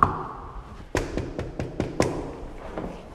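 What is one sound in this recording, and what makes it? A young man knocks on a door.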